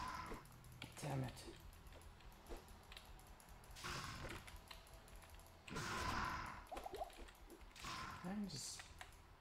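Creatures grunt and cry out in pain.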